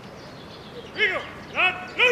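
A dog barks loudly a few times.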